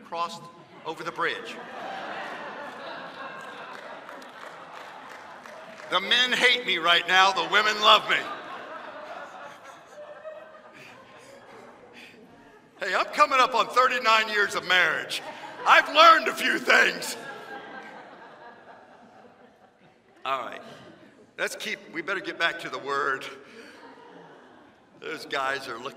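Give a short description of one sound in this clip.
A man speaks with animation through a microphone in a large echoing hall.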